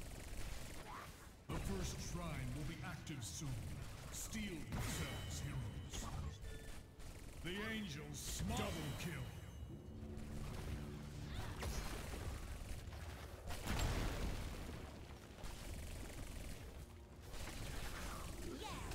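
Magic blasts and weapon strikes clash and burst in a busy fight.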